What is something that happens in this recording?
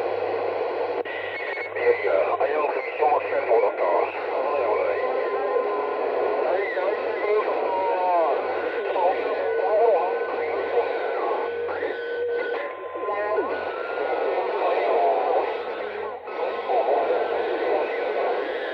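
A radio signal warbles and whistles through the static.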